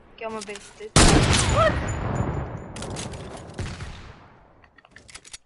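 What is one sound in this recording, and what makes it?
A rifle fires a single loud shot that echoes and slowly fades.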